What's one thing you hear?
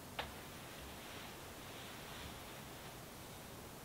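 Cloth rustles softly as it is spread out.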